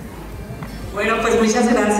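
A young woman speaks into a microphone over loudspeakers.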